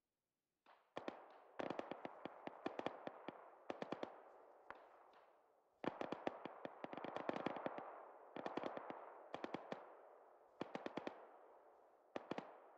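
Gunfire crackles in rapid bursts.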